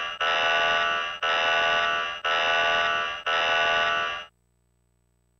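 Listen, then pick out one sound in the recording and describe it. A warning alarm blares in four repeated bursts.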